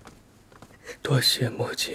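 A man speaks softly and weakly, close by.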